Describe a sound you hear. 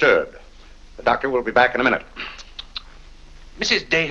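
A middle-aged man answers calmly.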